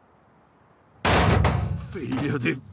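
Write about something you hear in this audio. A heavy body lands hard with a thud.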